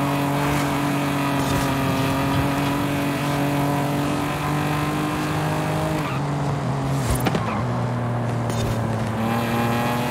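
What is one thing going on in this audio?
A sports car engine roars at high revs, dropping in pitch as the car slows.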